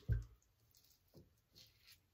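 A razor scrapes across stubble.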